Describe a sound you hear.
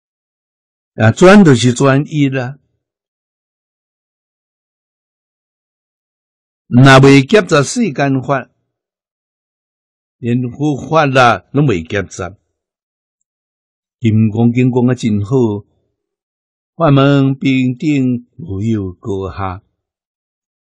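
An elderly man speaks calmly and slowly into a microphone, pausing often.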